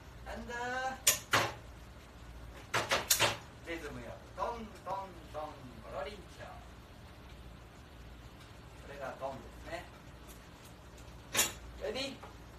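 Metal utensils clatter against pans.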